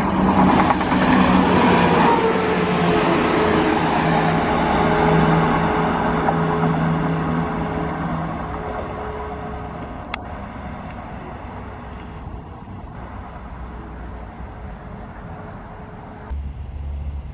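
A passenger train roars past close by and fades into the distance.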